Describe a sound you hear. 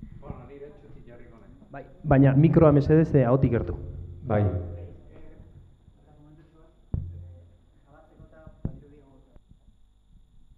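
A man speaks into the room.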